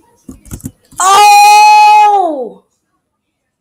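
A young man cries out loudly in dismay close to a microphone.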